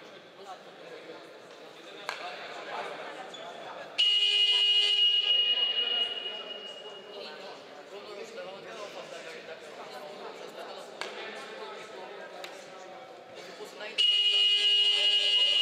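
A few spectators chatter faintly in a large echoing hall.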